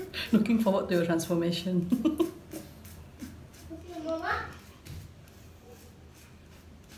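A razor scrapes over a wet scalp.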